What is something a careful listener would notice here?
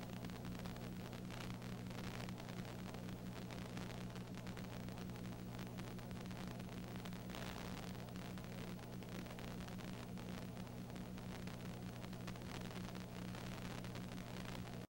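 A crowd cheers and shouts in a large space.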